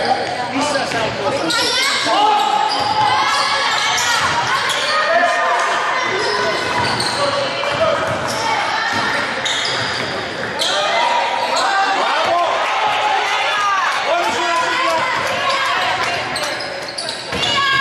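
A small crowd murmurs and calls out in a large echoing hall.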